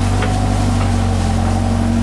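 Soil and rocks pour from an excavator bucket and thud onto the ground.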